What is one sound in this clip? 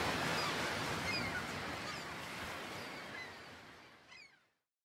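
Sea waves wash and roll in the open air.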